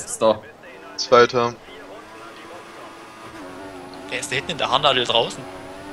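A racing car engine drones and rises in pitch as the car speeds up.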